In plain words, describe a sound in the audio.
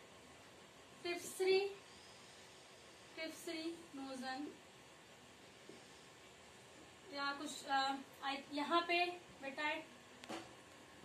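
A young woman speaks calmly nearby, explaining in short phrases.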